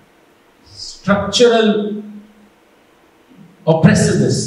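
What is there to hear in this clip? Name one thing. A middle-aged man speaks with animation into a handheld microphone.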